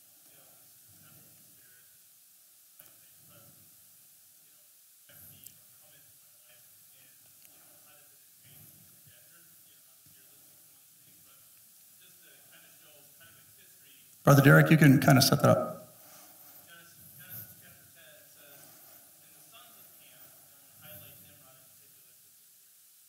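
A man speaks calmly to a room, faint and with some echo.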